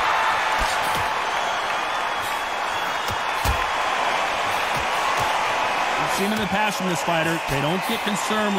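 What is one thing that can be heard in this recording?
Boxing gloves land punches with dull thuds.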